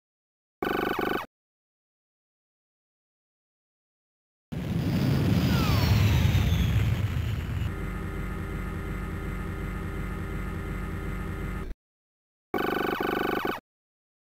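Rapid electronic beeps chatter in short bursts.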